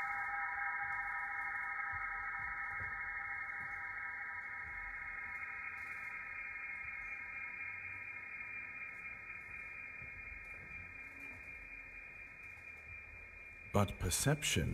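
A violin plays a long, sustained note that slowly fades.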